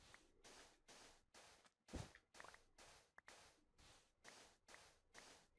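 Sand blocks break with soft crunching pops.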